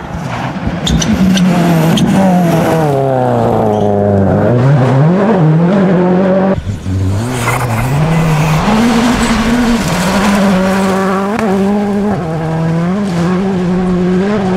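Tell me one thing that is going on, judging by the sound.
A rally car engine roars loudly as the car speeds past, its pitch rising and falling with gear changes.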